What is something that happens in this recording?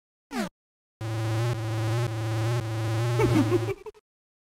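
Chiptune-style video game music plays.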